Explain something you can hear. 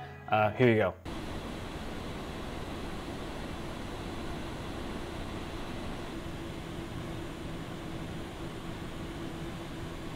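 Computer fans whir with a steady hum.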